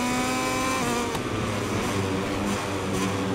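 A motorcycle engine drops in pitch as it brakes for a corner.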